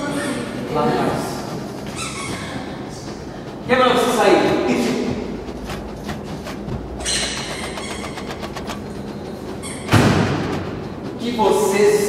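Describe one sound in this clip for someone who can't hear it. A man shouts loudly nearby.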